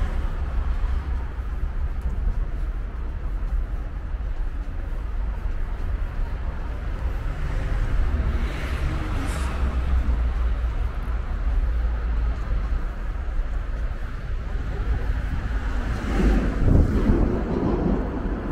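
Footsteps tap along a stone pavement.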